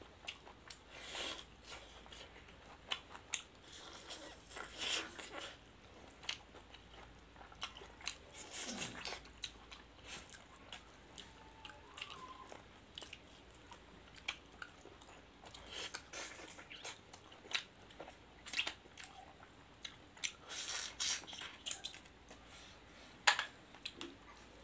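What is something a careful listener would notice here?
Two people chew and smack their lips loudly, close by.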